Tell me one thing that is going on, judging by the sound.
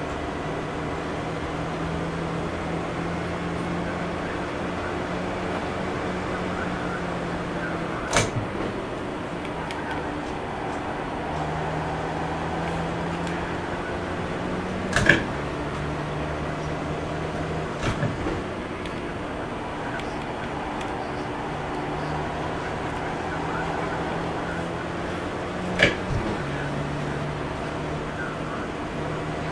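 A racing car engine drones steadily, dipping briefly at each gear change.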